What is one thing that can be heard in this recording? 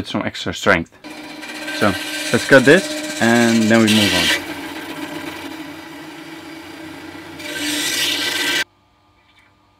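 A band saw whirs as it cuts through metal tubing.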